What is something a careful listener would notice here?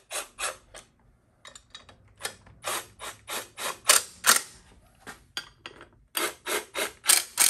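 A hand tool rasps against a motorcycle engine in short, repeated bursts.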